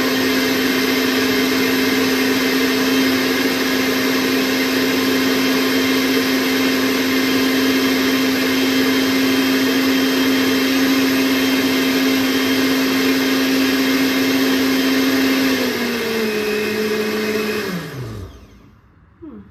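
A blender whirs loudly and steadily, then slows and winds down.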